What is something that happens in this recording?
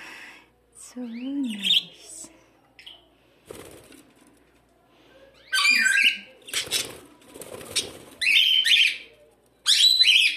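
Small parakeets chirp and warble close by.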